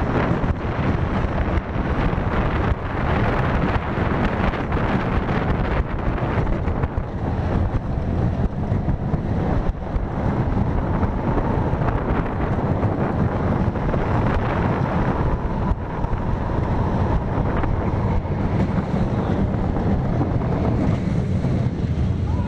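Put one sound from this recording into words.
A roller coaster train rumbles and rattles loudly along its track.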